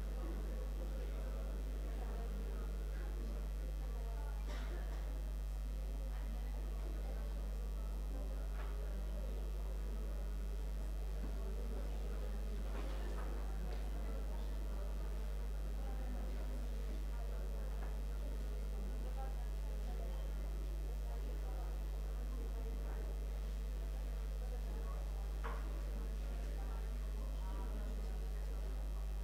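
A crowd murmurs quietly.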